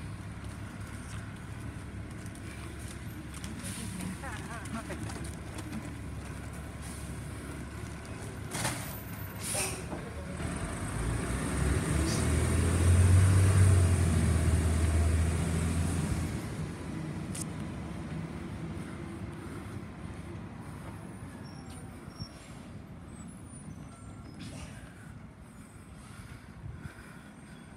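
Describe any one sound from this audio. A garbage truck's diesel engine rumbles nearby.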